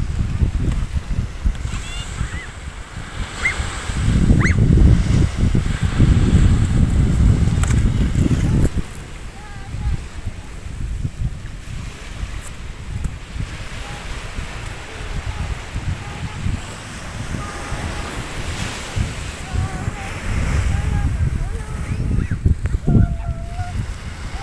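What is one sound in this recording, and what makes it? Small waves wash gently onto a shore.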